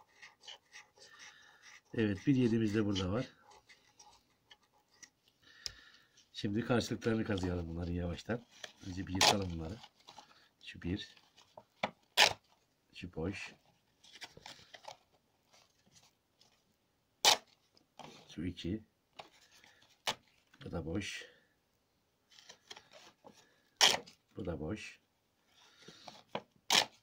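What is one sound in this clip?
Stiff paper cards rustle and flap as they are handled.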